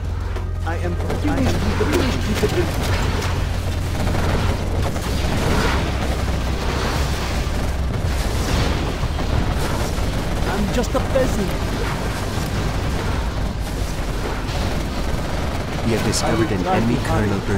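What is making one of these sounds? Explosions boom across a battlefield.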